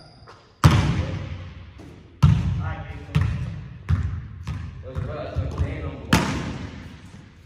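A basketball bounces loudly on a hard floor, echoing through a large hall.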